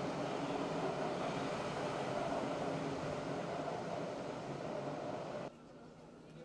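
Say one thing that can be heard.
A subway train rumbles loudly as it pulls away and fades.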